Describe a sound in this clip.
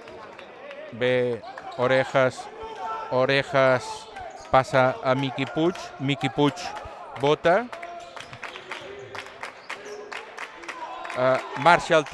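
Young men shout loudly across an echoing hall.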